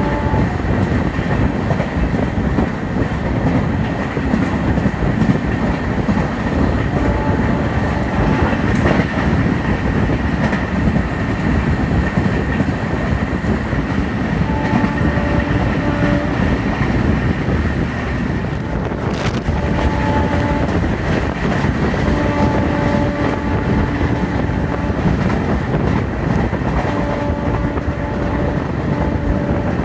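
Wind rushes past an open train window.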